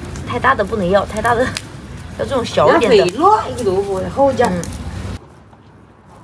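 A young woman talks close by with animation.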